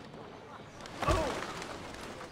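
A heavy thump lands from a jump.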